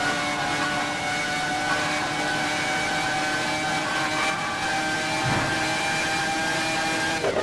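A racing car engine screams steadily at high revs.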